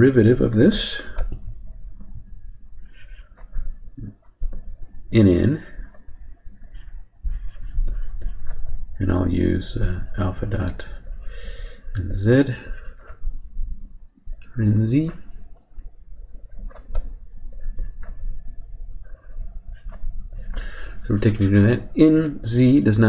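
A man speaks calmly and explains, close to a microphone.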